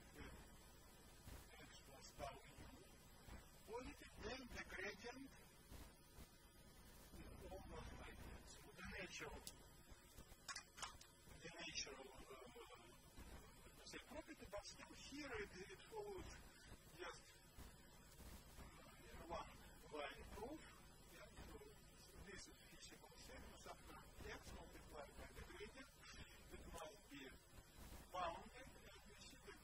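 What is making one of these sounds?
An elderly man lectures calmly through a microphone.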